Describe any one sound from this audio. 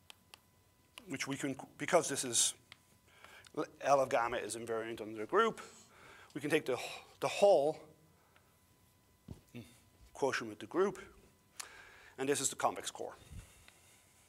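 A middle-aged man speaks calmly and clearly, lecturing.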